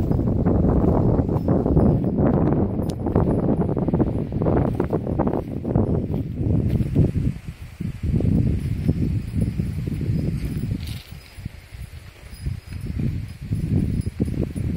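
Footsteps crunch on dry, loose soil.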